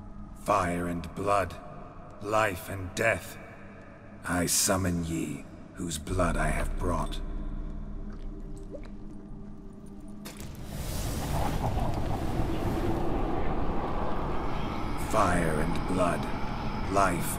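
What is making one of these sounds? A man speaks in a low, solemn voice, close by.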